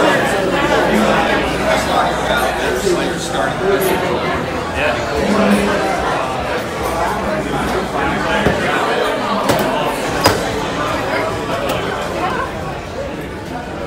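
A crowd of adults chatters around the listener indoors.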